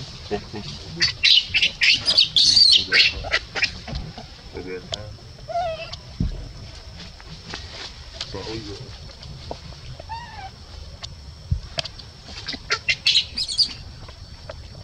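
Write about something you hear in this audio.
A baby monkey shrieks and cries in distress.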